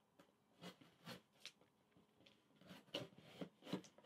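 A serrated knife scrapes against tape on a cardboard box.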